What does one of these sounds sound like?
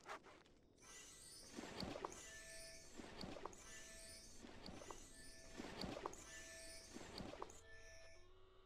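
A cheerful game jingle plays with a steady beat.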